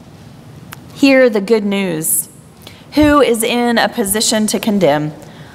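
A singer sings in a large echoing hall.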